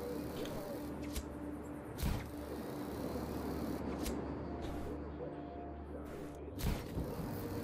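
Wind rushes past steadily during a parachute glide.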